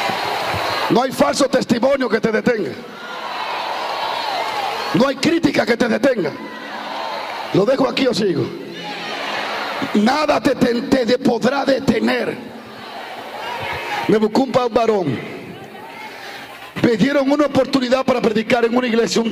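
A man preaches loudly and fervently through a microphone.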